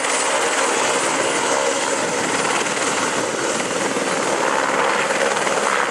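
A helicopter's rotor blades thump and its engine roars close by, outdoors.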